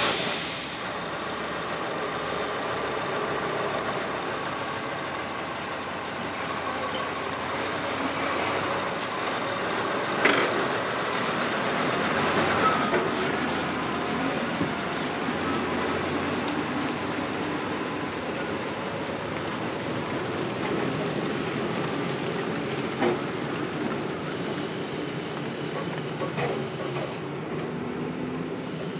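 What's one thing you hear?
A heavy truck engine rumbles steadily as a logging truck drives slowly past.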